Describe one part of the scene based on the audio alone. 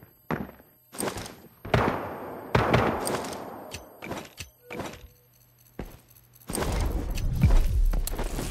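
A pistol fires with loud, echoing bangs.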